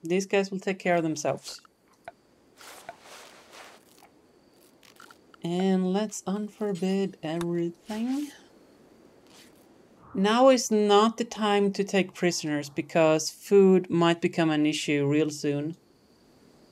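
A woman talks calmly and close to a microphone, in short bursts.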